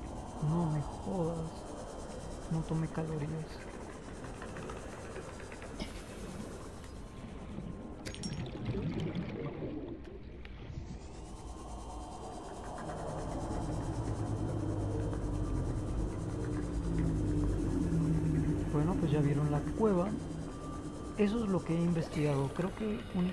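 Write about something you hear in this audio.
A small submarine's engine hums steadily underwater.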